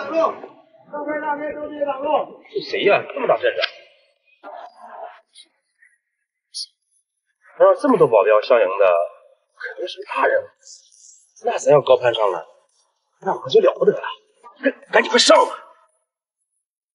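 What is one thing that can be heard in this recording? A man speaks firmly close by.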